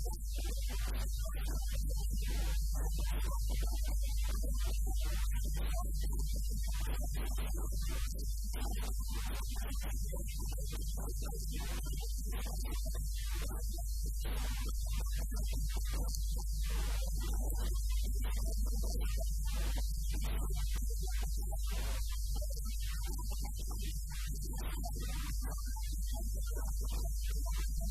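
A man speaks forcefully into microphones, in a slightly echoing room.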